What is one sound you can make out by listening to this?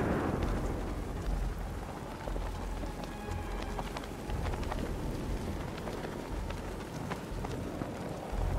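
A cape flaps in the wind.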